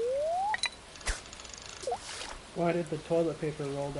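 A bobber plops into water.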